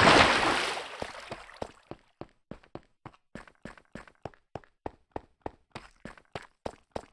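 Footsteps tap steadily and quickly on stone.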